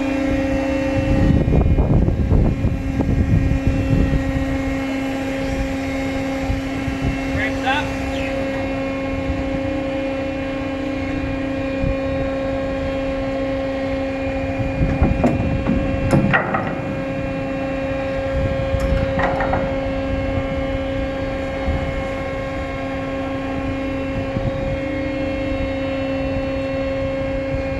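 A ship's winch and engines hum steadily.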